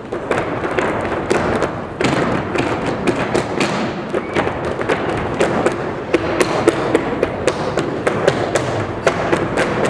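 Lively dance music with a fast, steady beat plays through loudspeakers in a large hall.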